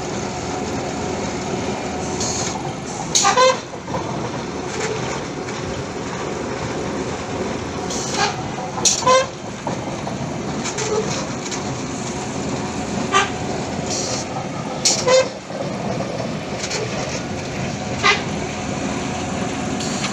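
A machine engine rumbles steadily nearby.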